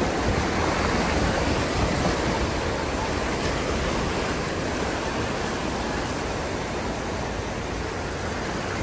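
A vehicle drives through deep floodwater, water rushing and splashing against its side.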